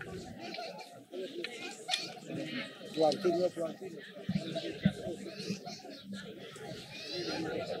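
A crowd of people chatter outdoors all around.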